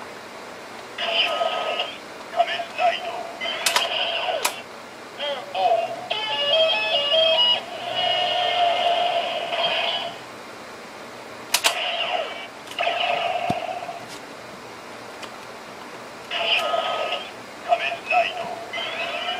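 A toy belt plays electronic sound effects and music through a small speaker.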